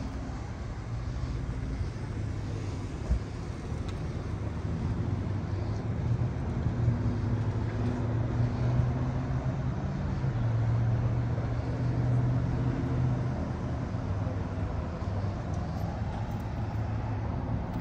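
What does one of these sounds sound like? Car engines idle with a low steady hum nearby.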